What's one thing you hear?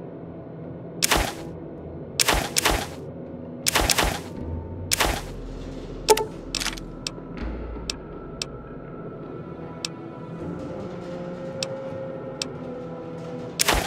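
Short game menu clicks and blips sound as items are picked.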